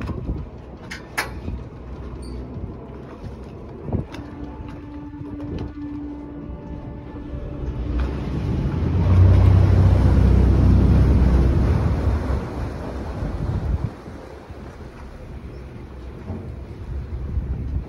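Small waves lap and slosh on open water.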